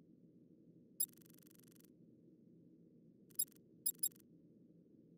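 Menu selections click softly.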